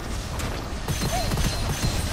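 A weapon fires rapid bursts of energy shots.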